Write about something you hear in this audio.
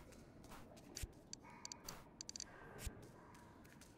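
Soft clicking sounds tick in short bursts.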